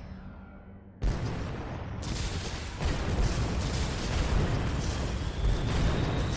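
Explosions boom and roar loudly.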